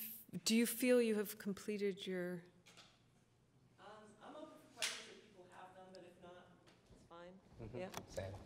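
A middle-aged woman speaks with animation into a microphone in a large room.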